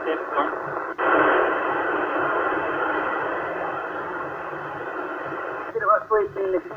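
Radio static hisses loudly from a small loudspeaker.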